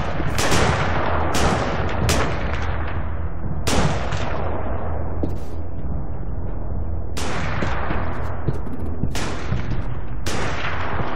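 Gunshots ring out one after another, echoing and fading.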